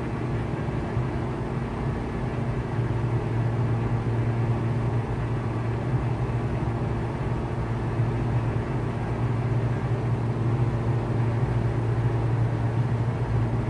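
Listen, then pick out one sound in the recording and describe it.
A propeller engine drones steadily inside a small aircraft cabin.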